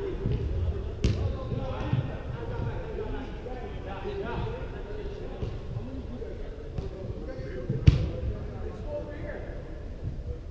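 Young men call out to each other at a distance, echoing in a large hall.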